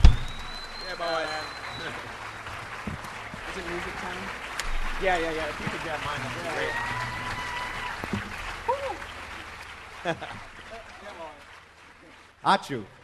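A jazz band plays with saxophone and trumpet in a large hall.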